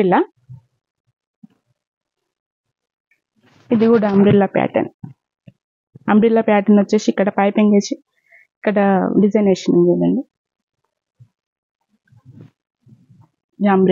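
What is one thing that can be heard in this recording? A woman speaks calmly and closely, in short bursts.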